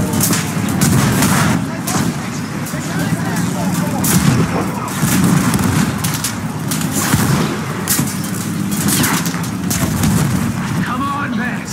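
Shells explode nearby.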